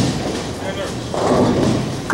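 A bowling ball thuds onto a lane as it is released.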